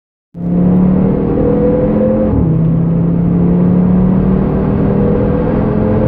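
A car engine roars loudly at high revs, rising in pitch, dropping briefly at a gear change, then climbing again.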